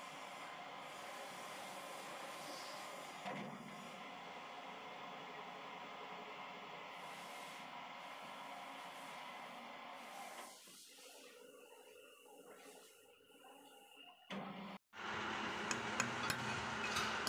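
A lathe runs with a steady whirring hum, stopping briefly and then starting up again.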